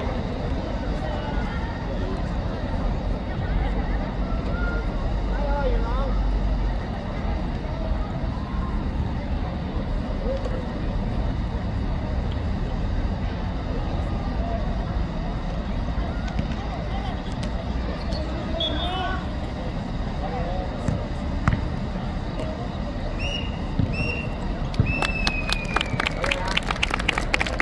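Children shout and call out outdoors across an open pitch.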